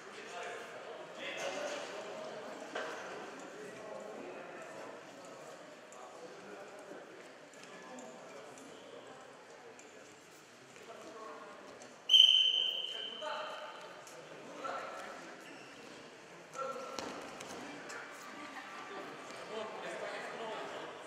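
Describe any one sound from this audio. Men talk and call out nearby in an echoing hall.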